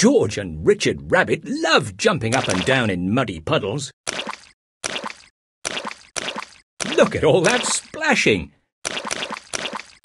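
Feet splash and squelch in muddy puddles.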